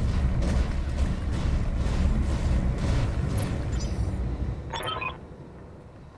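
A giant walking robot stomps with heavy, rumbling footsteps.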